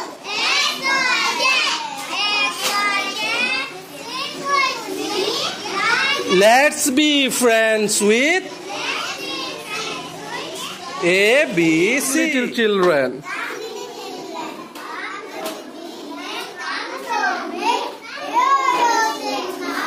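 Young boys recite a poem together in chorus.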